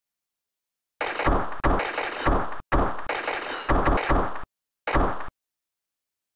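Bouncy electronic game sound effects ring out in bursts.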